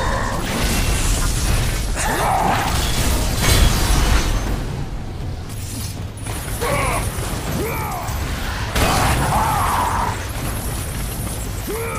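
Heavy blows land with loud crashing impacts.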